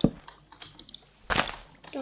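Leaves crunch as a block breaks.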